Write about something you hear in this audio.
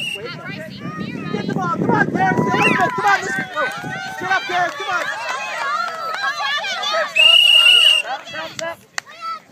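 Young children shout and squeal excitedly outdoors.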